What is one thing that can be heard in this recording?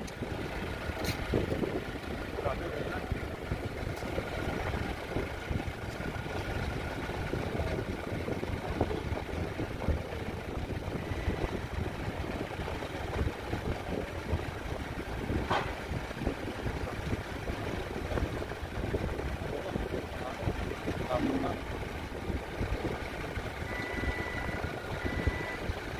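A large fan whirs and blows steadily, like wind.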